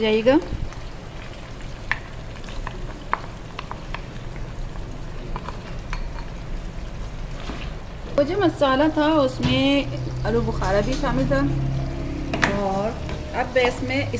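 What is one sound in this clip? A wooden spatula scrapes and taps against a pan.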